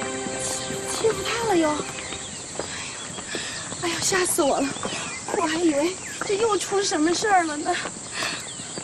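A young woman talks nearby, sounding upset.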